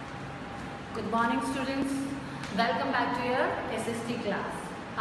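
A woman speaks clearly and calmly toward a nearby microphone.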